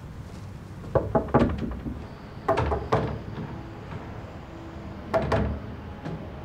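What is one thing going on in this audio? A young man knocks on a door.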